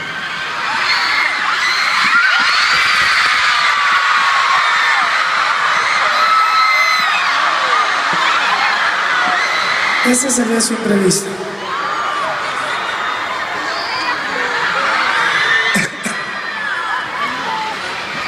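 A large crowd screams and cheers loudly in a big echoing arena.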